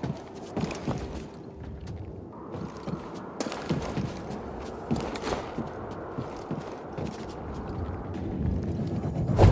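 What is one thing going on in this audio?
Footsteps run and thud on stone.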